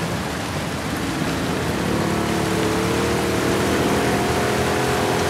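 A small outboard motor putters steadily.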